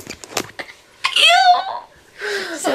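A teenage girl laughs loudly close by.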